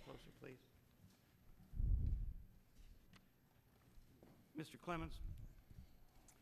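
Paper rustles as pages are shuffled.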